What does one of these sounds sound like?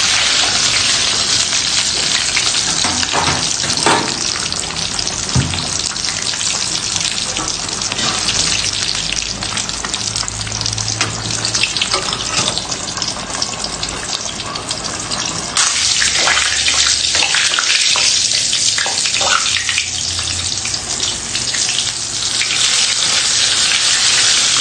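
Hot oil sizzles and spatters loudly in a frying pan.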